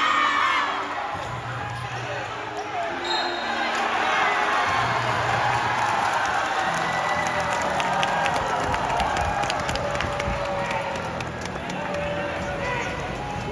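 Sneakers squeak sharply on a court floor.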